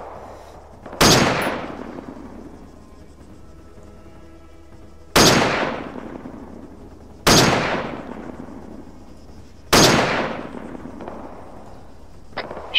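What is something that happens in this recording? A rifle fires loud shots that echo and roll away across open country.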